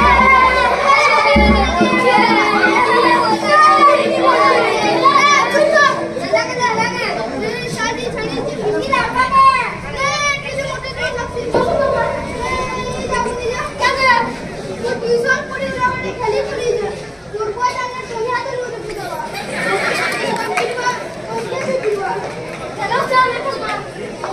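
Young boys speak and shout loudly through a loudspeaker.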